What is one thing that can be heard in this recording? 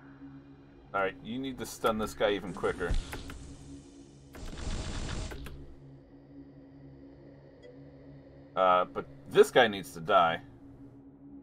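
A man speaks casually into a nearby microphone.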